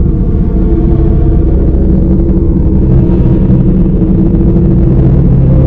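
Water bubbles and churns at a rolling boil.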